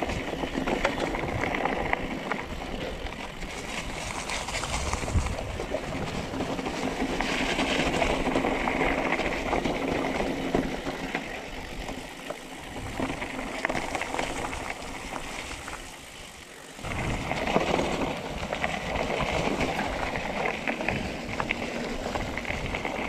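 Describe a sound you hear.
Bicycle tyres crunch and rattle over a leafy dirt trail.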